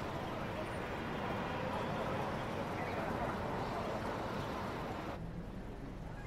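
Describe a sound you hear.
Street traffic hums outdoors.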